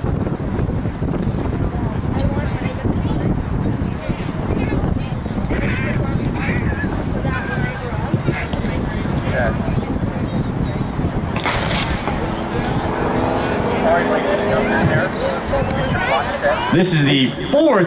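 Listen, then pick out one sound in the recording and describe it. A crowd of spectators chatters and calls out nearby, outdoors in wind.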